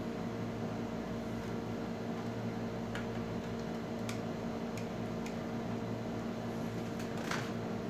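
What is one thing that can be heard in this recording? Hands shift a large LCD panel on a table.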